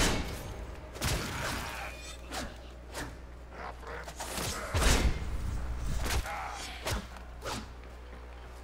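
A melee weapon swings and strikes with sharp whooshes.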